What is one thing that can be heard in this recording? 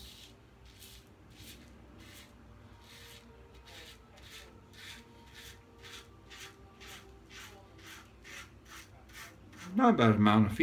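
A razor scrapes through stubble in short, steady strokes.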